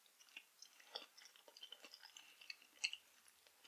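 A woman whispers softly close to a microphone.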